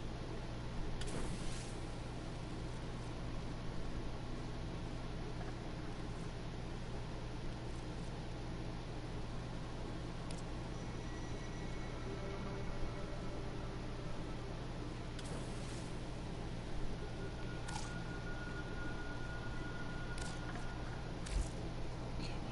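Game menu clicks and chimes sound briefly.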